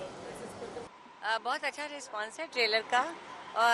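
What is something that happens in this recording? A woman speaks into microphones at close range.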